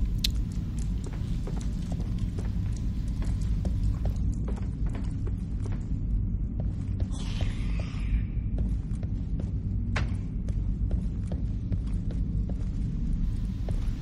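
Footsteps clank softly on a metal floor.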